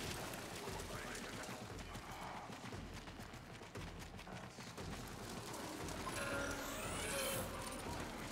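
Energy weapons whoosh and crackle in a video game.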